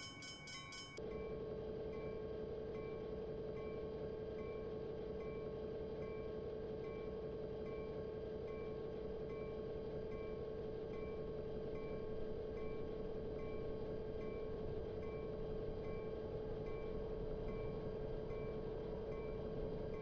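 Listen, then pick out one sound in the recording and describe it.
A locomotive engine drones steadily from inside the cab.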